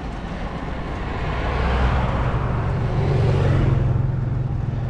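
Another car rolls past on the road.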